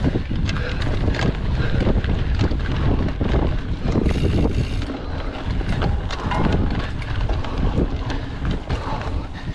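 Tyres of a mountain bike roll and crunch over a dirt trail.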